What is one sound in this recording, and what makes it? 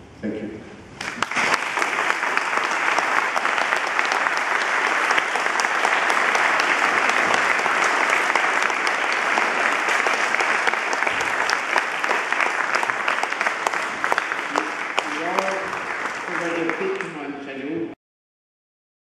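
A large audience applauds loudly in an echoing hall.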